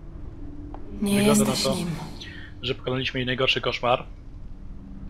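A young woman speaks calmly and softly.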